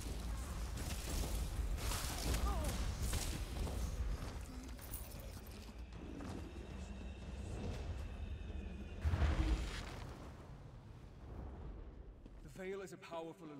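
Magic spells crackle and roar in a fight.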